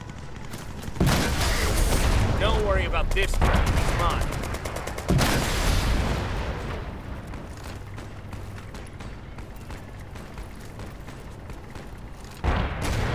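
Gunfire and explosions boom in a video game battle.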